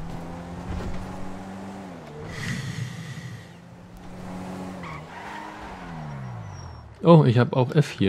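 A car engine hums and shifts pitch as the car speeds up and slows down.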